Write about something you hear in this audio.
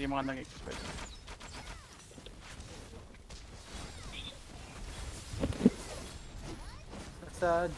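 Magic spells burst and crackle in short bursts.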